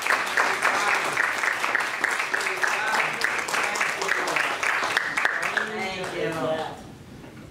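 Hands clap in a steady rhythm.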